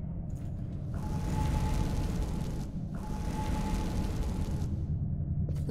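A magical spell shimmers and hisses in two bursts.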